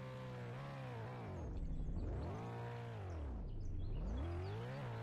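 A car engine revs sharply down and back up while reversing.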